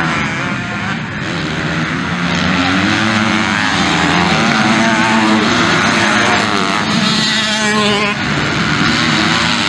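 Dirt bike engines roar and rev loudly as they race past.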